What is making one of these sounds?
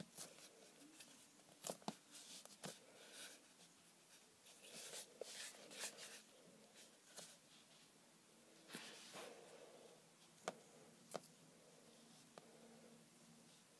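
Soft putty squishes and rubs against a wooden table.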